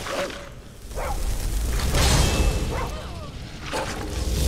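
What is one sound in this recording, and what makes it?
A swirling magical roar swells and fades.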